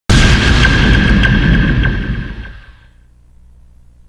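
Fast electronic dance music plays loudly, then fades out.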